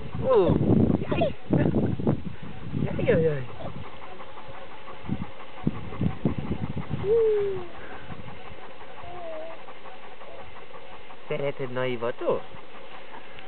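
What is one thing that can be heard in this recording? A man talks softly close by.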